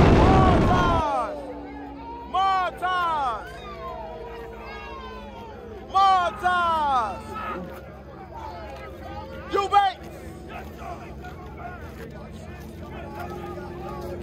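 A crowd of people chatter and shout outdoors.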